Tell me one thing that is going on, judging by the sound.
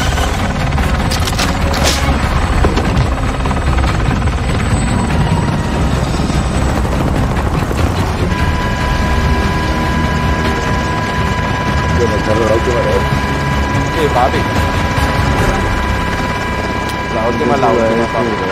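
A helicopter's rotor thumps and roars steadily close by.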